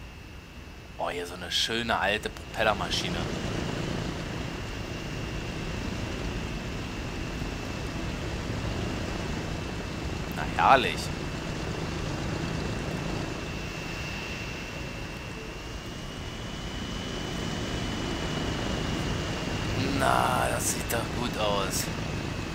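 Propeller aircraft engines drone steadily.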